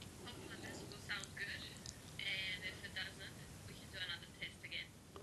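A young woman speaks quietly and casually, heard faintly through a laptop microphone.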